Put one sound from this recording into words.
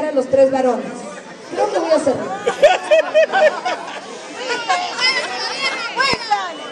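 A large crowd of men and women chatters loudly all around.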